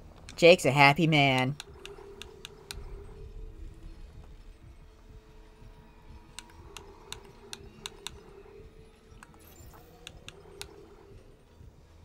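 Short electronic clicks sound as menu items are selected.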